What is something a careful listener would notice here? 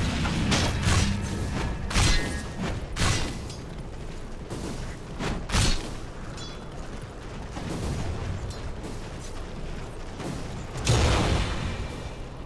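Sharp impacts and hits strike in quick bursts.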